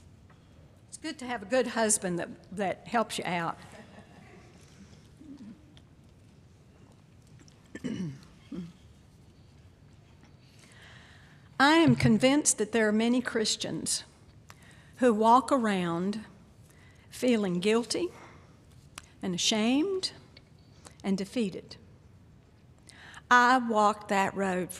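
An elderly woman speaks calmly into a microphone in an echoing hall.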